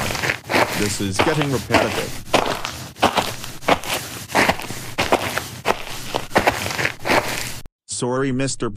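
A young boy speaks with animation.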